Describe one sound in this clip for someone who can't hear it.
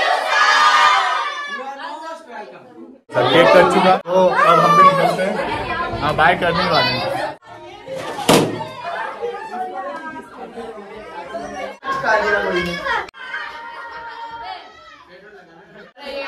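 Children cheer and shout excitedly.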